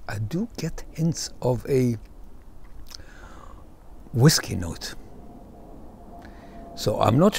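An older man speaks calmly and close to a microphone, with pauses.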